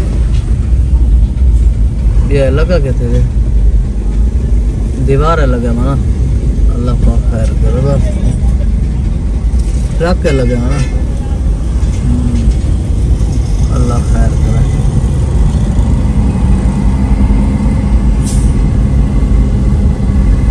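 A vehicle's engine rumbles low and steady, heard from inside a car in slow traffic.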